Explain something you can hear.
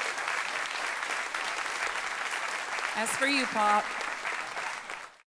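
An audience applauds and cheers in a large room.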